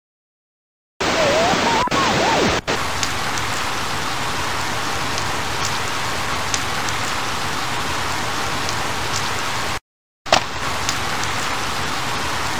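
Steady rain falls with a hissing patter.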